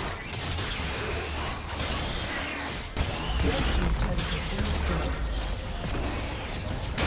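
Magic blasts and weapon strikes crackle and whoosh in a fast fight.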